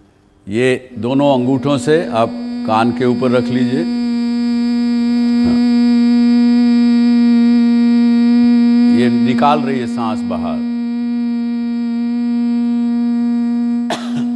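A young woman hums a long steady note into a microphone.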